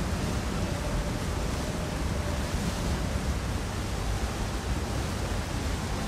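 Waterfalls pour and splash steadily.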